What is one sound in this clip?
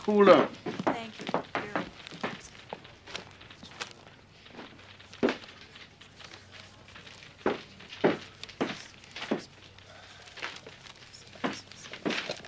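Papers rustle and crinkle as they are handled.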